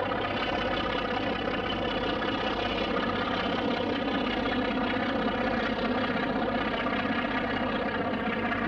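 A diesel locomotive engine rumbles as a train rolls past.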